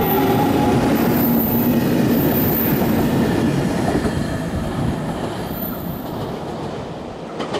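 A train rumbles past close by, its roar fading as it leaves.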